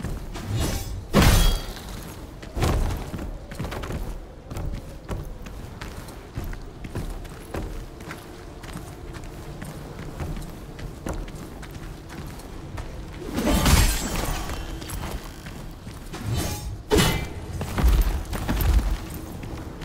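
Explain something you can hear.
A sword swishes and strikes in a fight.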